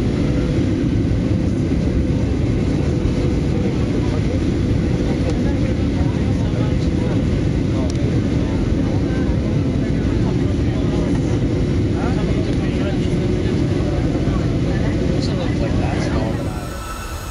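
A jet engine roars steadily from close by.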